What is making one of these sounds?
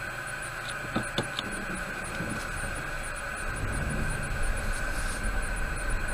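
A truck engine idles nearby with a steady hum.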